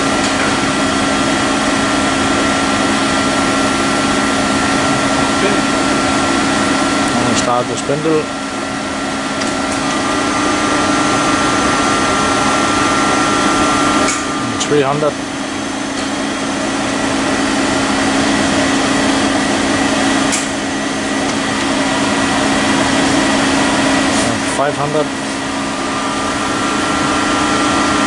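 A large machine hums and whirs steadily.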